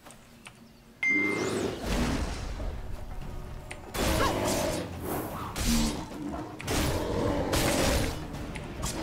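Heavy blows and whooshing strikes land in a fierce fight.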